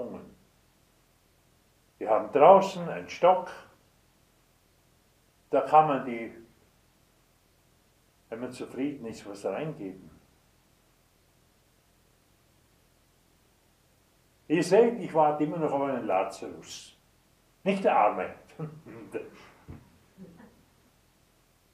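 An elderly man speaks calmly and slowly into a nearby microphone, pausing between phrases.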